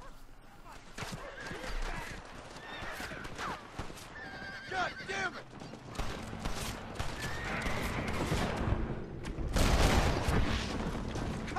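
Horses' hooves clatter along a dirt road.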